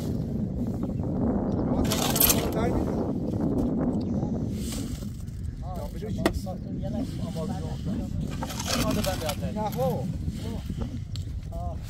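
A shovel scrapes and strikes against stones.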